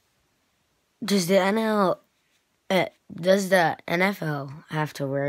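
A boy speaks close to a microphone, calmly then with animation.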